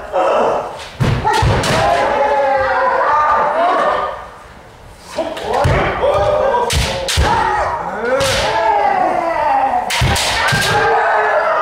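Bamboo swords crack against armour.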